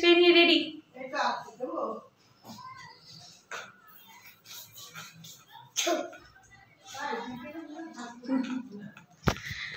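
A young girl talks and laughs close by.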